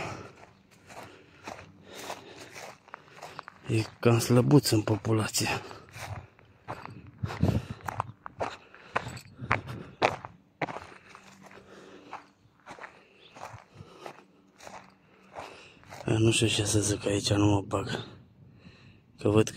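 Footsteps crunch on dry, stony ground.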